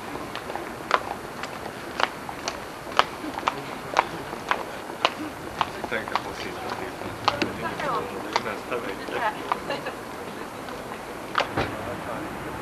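Footsteps click on cobblestones close by.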